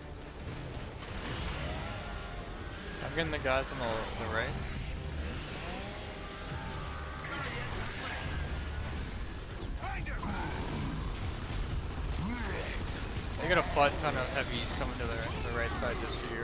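Gunfire from a video game rattles.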